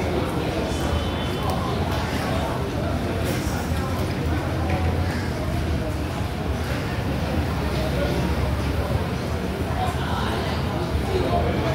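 A crowd of people chatters steadily in a busy, echoing hall.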